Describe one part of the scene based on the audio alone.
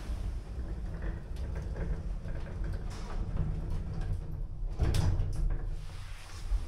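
Lift doors slide shut with a metal rumble.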